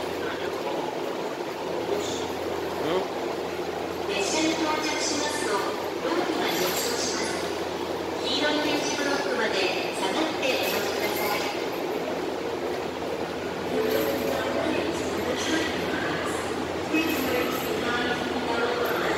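A train hums steadily nearby.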